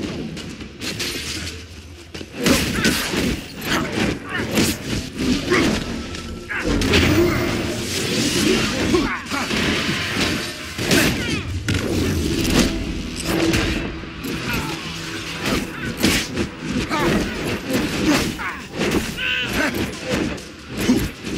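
Blows and impacts land hard in a fast fight.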